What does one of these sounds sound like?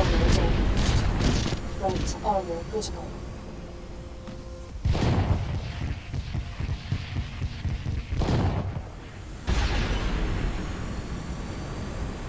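Heavy mechanical thuds boom in low bursts.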